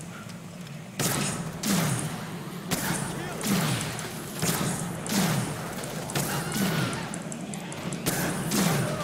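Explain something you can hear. Gunshots crack rapidly again and again.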